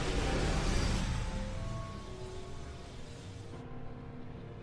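A dark portal whooshes and rumbles.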